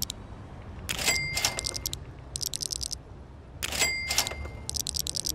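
A bright chime rings out twice.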